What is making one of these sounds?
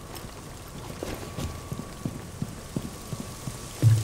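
Footsteps thud steadily on hard floor and stairs.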